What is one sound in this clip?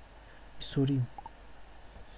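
A young man speaks briefly and close into a headset microphone.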